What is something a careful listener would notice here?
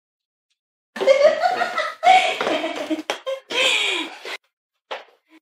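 An elderly woman laughs heartily.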